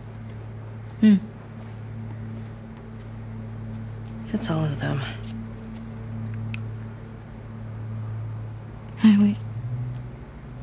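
A second young woman answers softly nearby.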